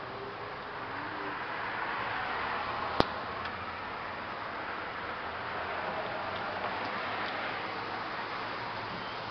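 Traffic rumbles and hisses steadily along a nearby road, outdoors.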